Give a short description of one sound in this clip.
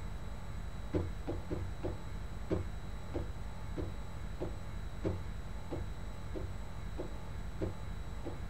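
Footsteps tap on a hard metal floor, walking away.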